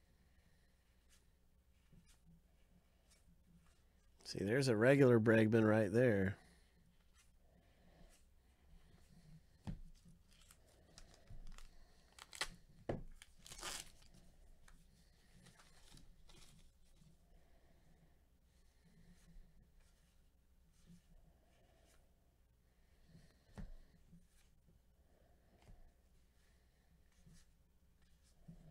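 Trading cards slide and tap softly against each other.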